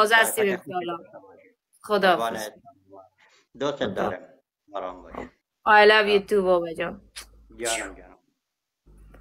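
A young woman talks calmly over an online call.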